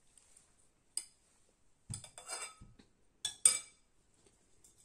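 Glass dishes clink and knock against a table.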